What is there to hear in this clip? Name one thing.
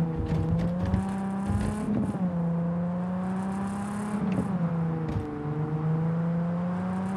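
A car engine hums steadily.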